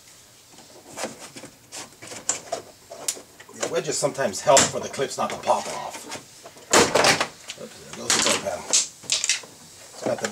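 Plastic clips snap and pop as a door panel is pried loose.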